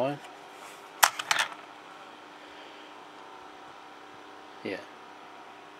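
A small plastic toy wagon clicks as it is set down on a table.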